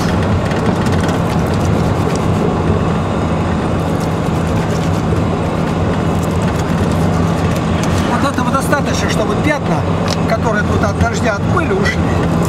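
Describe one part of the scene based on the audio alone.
A vehicle engine rumbles steadily from inside.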